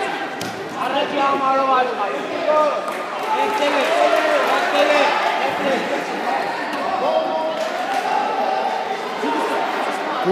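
A man close by shouts instructions loudly.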